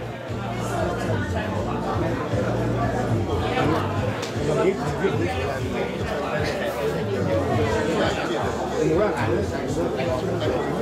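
A man speaks formally through a microphone and loudspeakers in a large echoing room.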